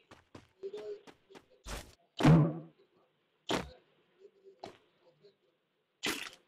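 Footsteps thud on the ground and on a metal roof.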